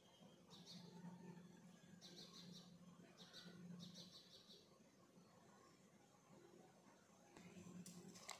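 Liquid pours into a metal bowl.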